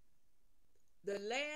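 An older woman speaks with animation, close up.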